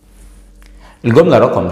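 A man speaks clearly and with animation, close to a microphone.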